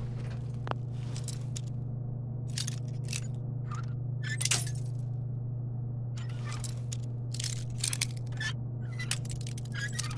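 A bobby pin and screwdriver scrape and click inside a lock.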